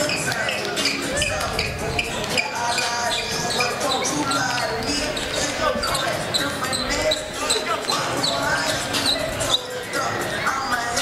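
Basketballs bounce on a wooden floor in a large echoing gym.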